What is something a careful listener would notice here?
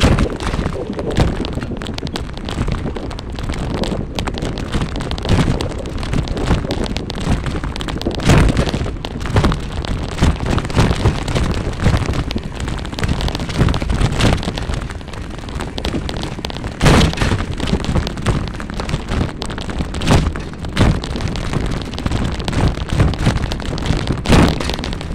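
A small vehicle rolls steadily along a paved path.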